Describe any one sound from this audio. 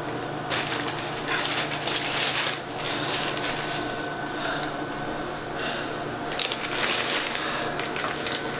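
A paper bag crinkles and rustles close by.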